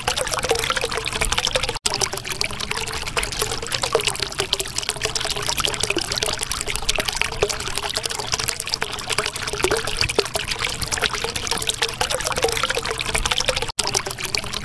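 Air bubbles gurgle and fizz steadily through water.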